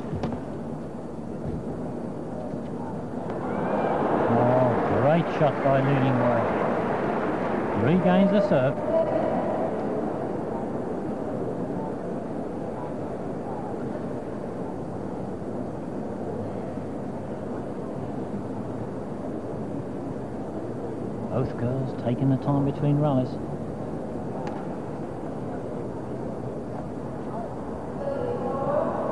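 A crowd murmurs in a large echoing hall.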